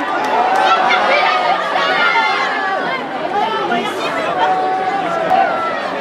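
A small crowd of spectators cheers nearby.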